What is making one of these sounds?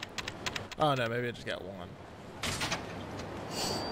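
A small metal locker door clicks open.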